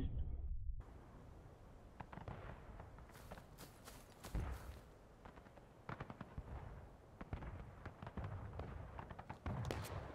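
Footsteps tread on a dirt path.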